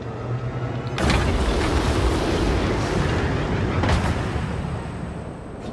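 Steam hisses out in a loud burst.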